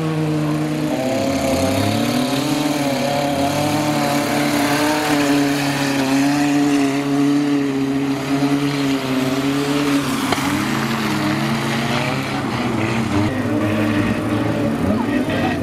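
Car engines rev loudly, rising and falling.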